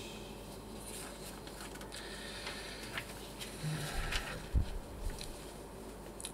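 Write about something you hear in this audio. A middle-aged man reads aloud into a microphone.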